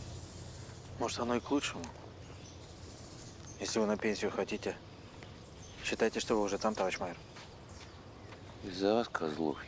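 A middle-aged man speaks calmly nearby, outdoors.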